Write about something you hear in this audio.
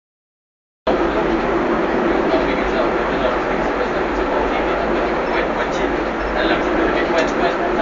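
A funicular car rumbles and rattles steadily along its rails.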